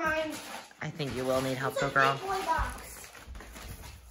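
Wrapping paper rips and rustles.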